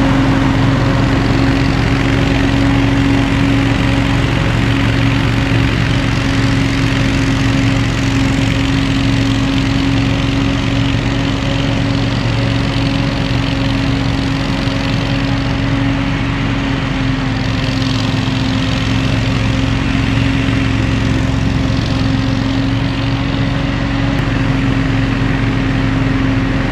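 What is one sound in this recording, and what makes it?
A leaf blower drones steadily outdoors.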